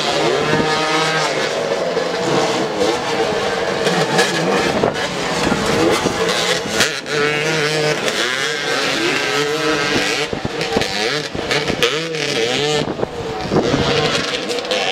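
Several motorcycle engines rev up and down close by.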